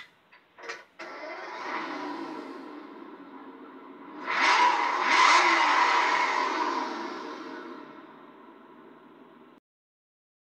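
A sports car engine revs hard, then winds down.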